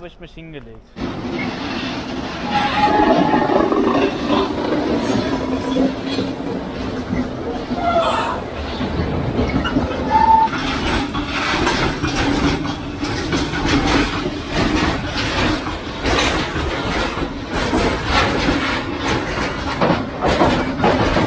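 A freight train rumbles and clatters past.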